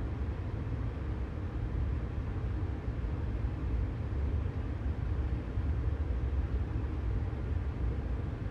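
An electric train rumbles steadily along the rails.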